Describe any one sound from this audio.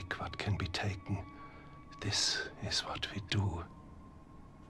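An elderly man speaks calmly and gravely, close by.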